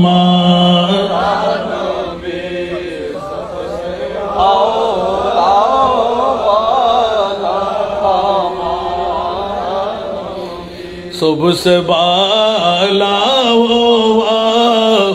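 A middle-aged man chants loudly in a melodic voice through a microphone and loudspeakers.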